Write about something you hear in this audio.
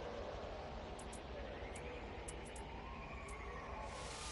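Short electronic beeps chirp from a game menu.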